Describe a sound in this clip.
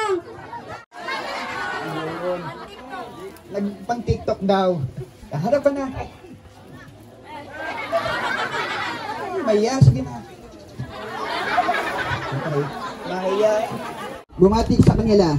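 A crowd of children shouts and cheers together.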